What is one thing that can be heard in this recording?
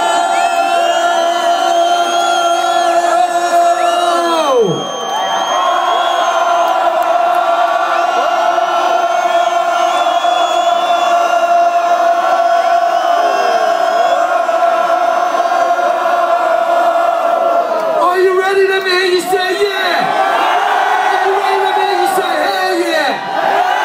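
A crowd cheers and shouts close by.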